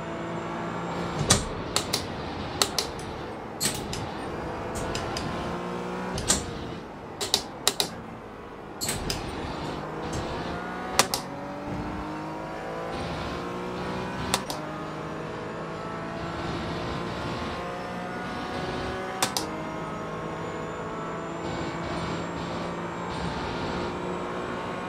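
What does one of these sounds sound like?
A racing car engine revs up and down through gear changes.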